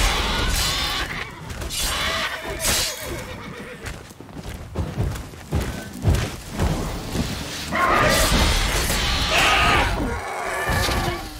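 A sword swishes and clashes in a fight.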